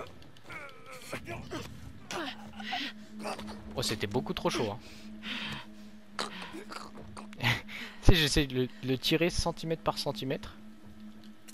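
A man gasps and chokes.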